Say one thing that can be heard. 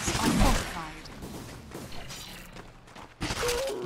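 Fantasy battle sounds clash and crackle with spell effects.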